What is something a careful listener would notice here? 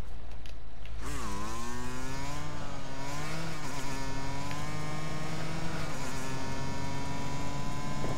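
A dirt bike engine revs and pulls away.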